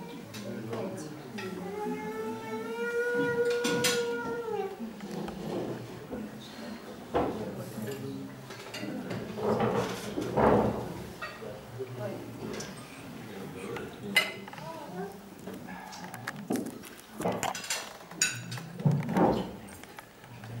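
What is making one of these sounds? A crowd of adults chatters and murmurs in the background.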